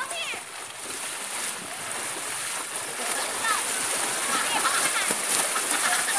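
Water splashes as a child jumps into a pool.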